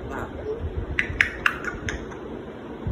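A parrot makes sharp clicking sounds close by.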